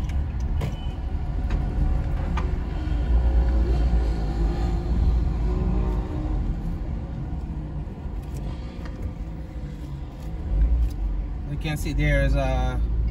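A car drives slowly with a low, steady rumble.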